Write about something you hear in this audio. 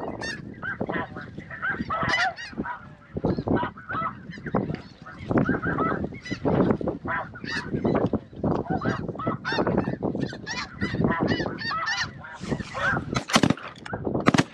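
A large flock of snow geese calls overhead.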